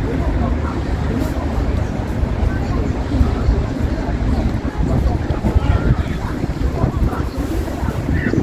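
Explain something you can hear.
A crowd murmurs at a distance.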